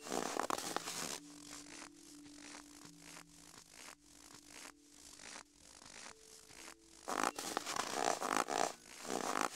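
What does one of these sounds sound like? Footsteps crunch steadily over stony ground.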